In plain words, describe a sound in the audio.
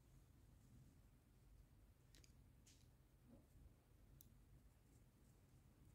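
A small screwdriver clicks and scrapes against a metal connector.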